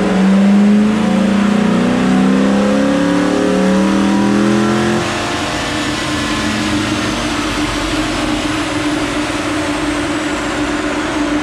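A car engine runs loudly close by, revving up and then settling to a steady idle.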